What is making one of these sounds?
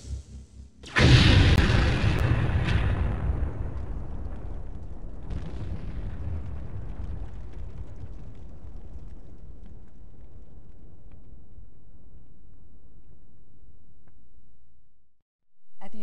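A huge explosion booms and rumbles, slowly fading away.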